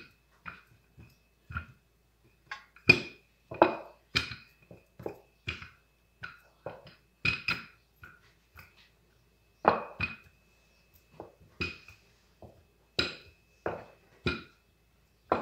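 A wooden rolling pin rolls and knocks against a counter.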